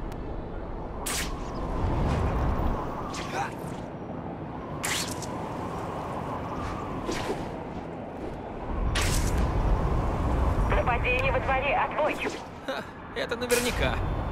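Wind rushes past steadily during a fast swing through the air.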